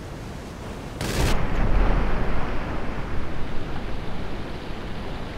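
An explosion booms and water sprays up.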